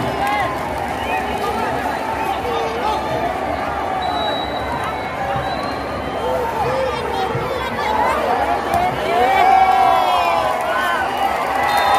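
Football players shout to each other across an open pitch.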